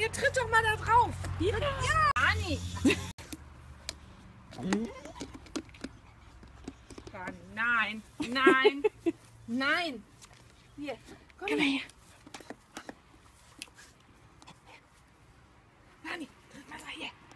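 A woman talks and laughs close by.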